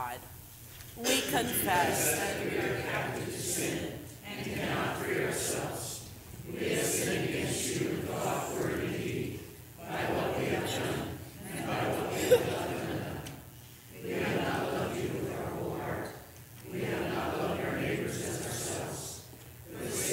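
A congregation sings a hymn together.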